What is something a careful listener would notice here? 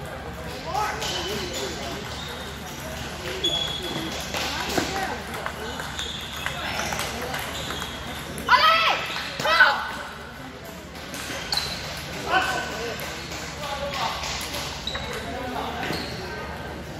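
People chatter in a large echoing hall.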